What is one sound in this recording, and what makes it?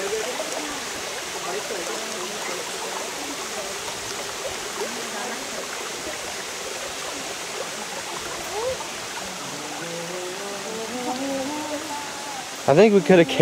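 Children call out at a distance outdoors.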